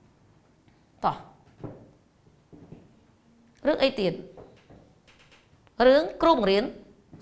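A woman speaks clearly and with animation.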